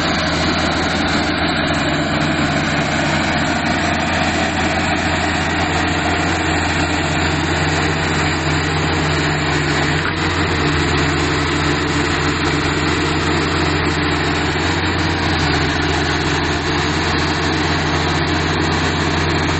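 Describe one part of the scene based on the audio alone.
A bulldozer's diesel engine rumbles loudly and steadily close by.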